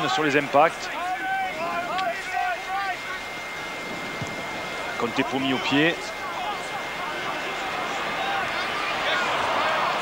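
A large stadium crowd roars, swelling louder.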